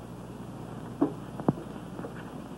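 A tray clatters briefly on a hard surface.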